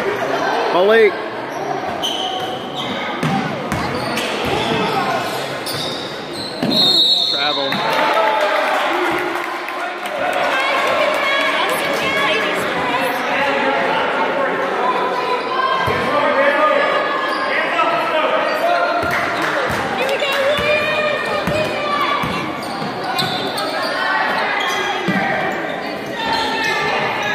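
Spectators cheer and shout in a large echoing hall.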